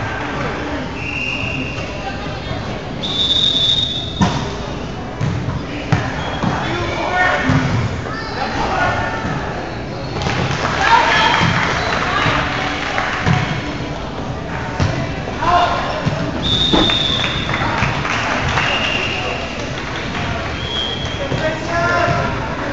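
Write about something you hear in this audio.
Young men call out and shout to each other across a large echoing gym.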